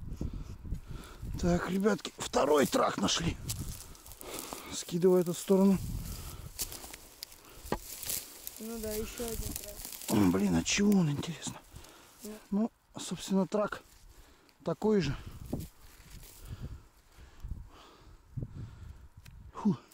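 Loose soil crumbles and scrapes under gloved hands.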